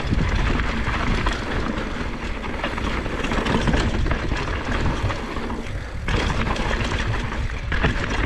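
Wind rushes loudly past close by.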